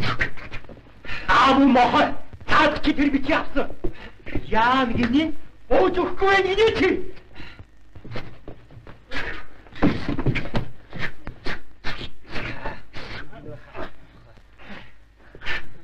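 A middle-aged man shouts angrily and with animation.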